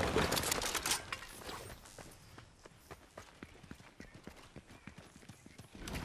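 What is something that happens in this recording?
A game character's footsteps run quickly on a road.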